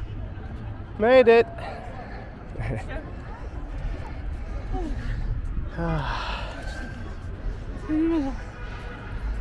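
A young boy speaks excitedly close by.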